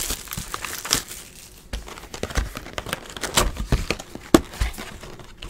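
Cardboard packs rustle and tap as they are handled.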